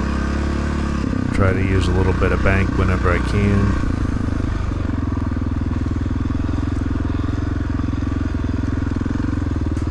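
A dirt bike engine runs with a steady, throaty drone.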